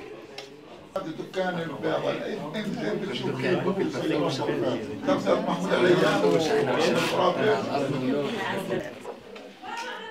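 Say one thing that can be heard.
People talk and laugh together in a room.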